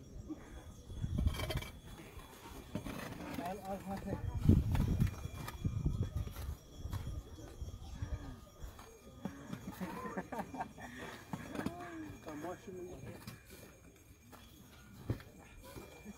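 Shovels scrape and thud into loose sandy soil.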